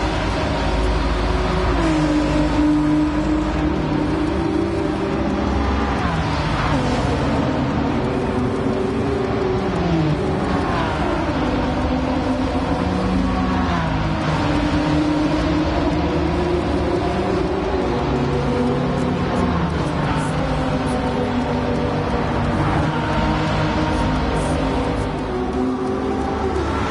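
Powerful car engines roar and rev up and down as they race past.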